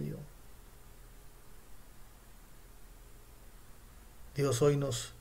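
A middle-aged man speaks calmly, close up.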